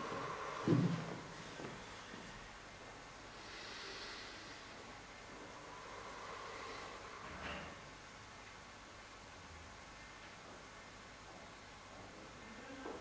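A middle-aged man speaks calmly.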